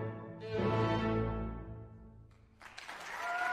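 An orchestra plays a loud closing chord in a large echoing hall.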